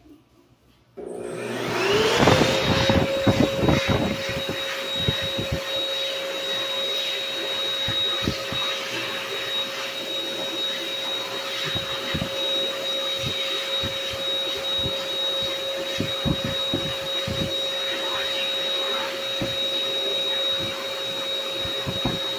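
An electric hand dryer starts up and blows with a loud, steady roar and a high whine.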